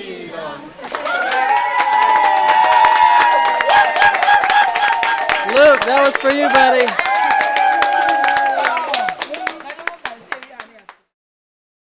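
People clap their hands in a steady rhythm.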